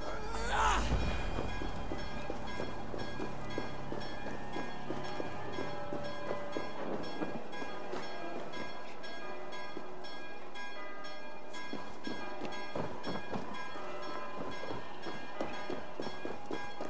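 Footsteps tread on stone and wooden boards.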